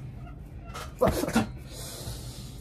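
A young woman laughs loudly up close.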